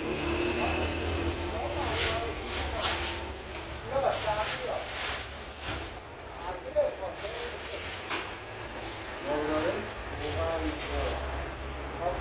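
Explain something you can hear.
A plastic bag rustles and crinkles as it is filled.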